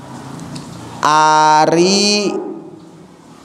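A man chants loudly into a microphone, his voice drawn out and echoing in a large room.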